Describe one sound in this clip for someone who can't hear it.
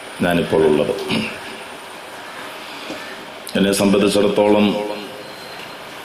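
A man speaks into a microphone in a slow, chanting preaching voice, heard through a loudspeaker.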